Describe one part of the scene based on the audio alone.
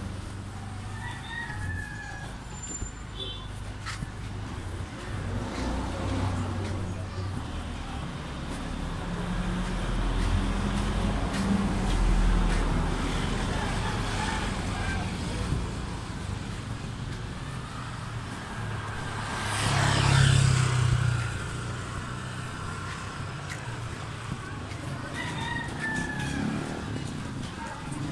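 Low street traffic noise hums steadily outdoors.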